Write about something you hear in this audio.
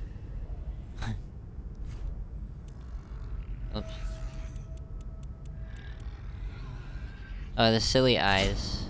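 Short game menu tones click as choices change.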